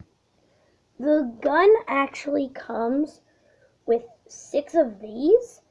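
A boy speaks with animation close to a microphone.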